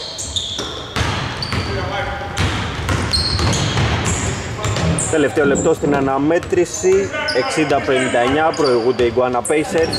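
A basketball bounces repeatedly on a hardwood floor.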